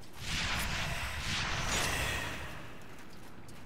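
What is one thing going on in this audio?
Magic energy crackles and hisses.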